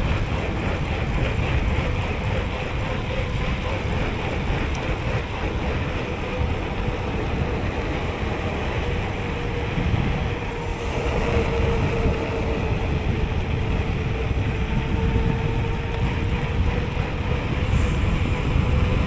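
Wind rushes loudly past a fast downhill bicycle ride.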